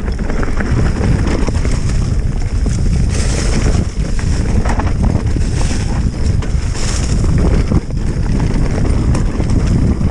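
Wind buffets a microphone loudly.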